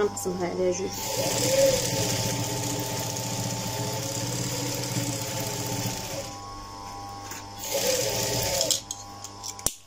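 A sewing machine runs with a fast, steady whirr.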